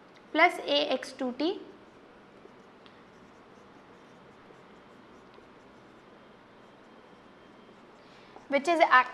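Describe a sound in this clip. A young woman speaks clearly into a close microphone.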